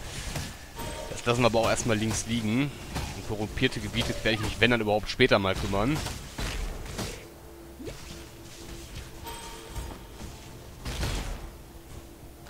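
Magic spells crackle and burst in quick succession.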